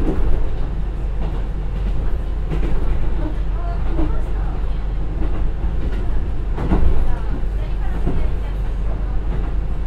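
Train wheels clatter and rattle on the rails.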